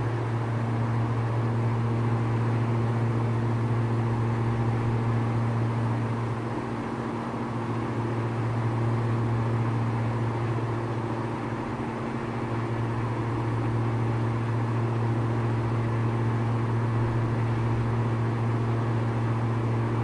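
A small propeller plane's engine drones steadily from inside the cabin.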